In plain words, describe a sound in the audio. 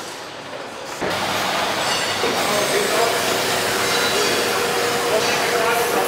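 Factory machinery hums and clatters in a large echoing hall.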